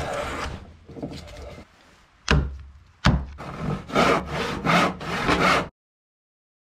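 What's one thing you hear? A hand saw cuts through wood with quick rasping strokes.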